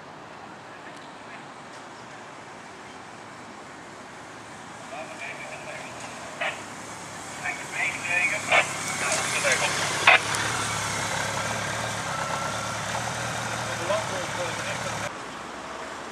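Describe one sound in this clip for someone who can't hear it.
A motorcycle engine hums as a motorcycle rides up slowly.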